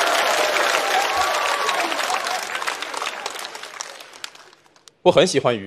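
An audience applauds and cheers in a large hall, then fades away.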